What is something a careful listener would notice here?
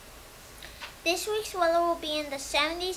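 A second young boy speaks clearly into a microphone.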